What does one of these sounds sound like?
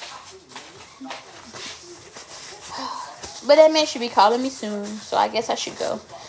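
A paper towel crinkles in someone's hands.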